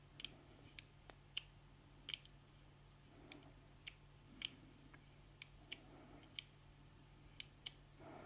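Small metal parts click and tick as a metal rod turns.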